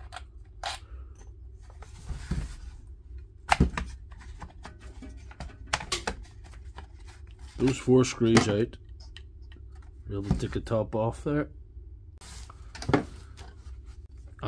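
Plastic casing knocks and clicks as it is handled.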